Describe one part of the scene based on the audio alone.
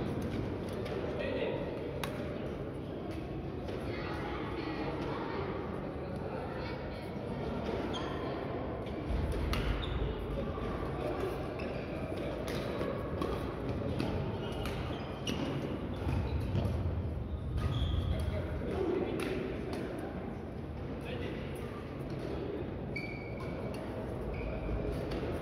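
Sports shoes squeak and thud on a court floor.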